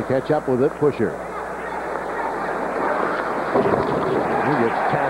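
A large crowd roars in a big echoing arena.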